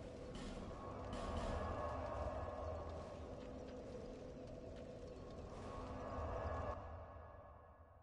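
A burst of smoke whooshes up.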